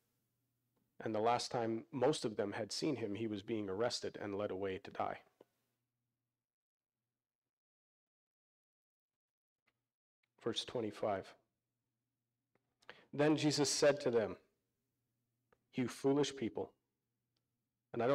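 A man speaks calmly into a microphone, heard through loudspeakers, with pauses.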